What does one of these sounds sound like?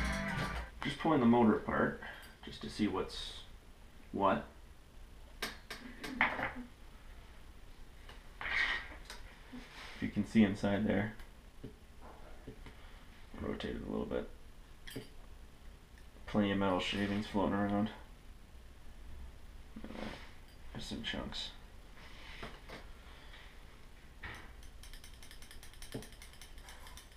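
Small plastic parts click and tap together in hands.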